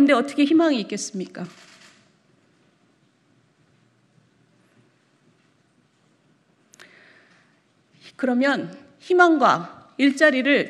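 A middle-aged woman speaks formally into a microphone, pausing between phrases.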